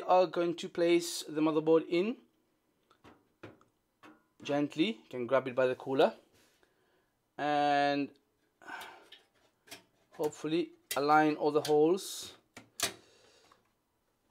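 Hard plastic and metal parts knock and click as they are handled.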